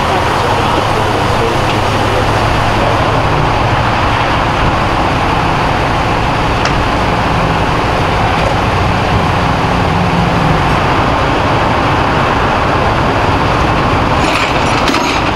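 Steam hisses steadily from a smouldering burned-out car.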